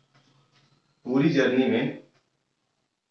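A young man speaks briefly and clearly, close by.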